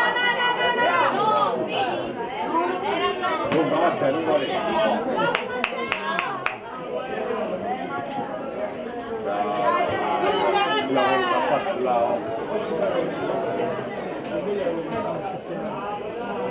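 Young boys shout to each other outdoors.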